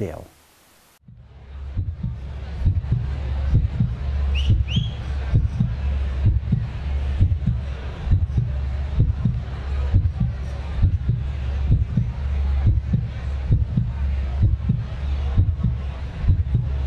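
A big band plays a lively tune with a steady beat in a large hall.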